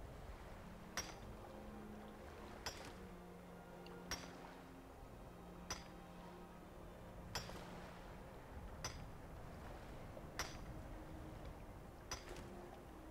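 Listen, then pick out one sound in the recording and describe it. A pickaxe strikes rock with sharp, regular blows.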